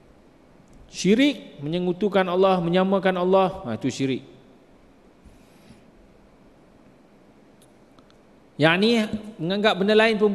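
A middle-aged man speaks calmly and with emphasis into a microphone, with pauses between phrases.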